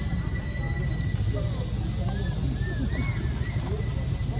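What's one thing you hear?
A baby monkey squeaks softly.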